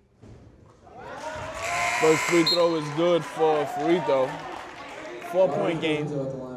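A crowd cheers and shouts in a large echoing gym.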